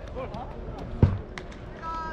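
A baseball smacks into a leather glove.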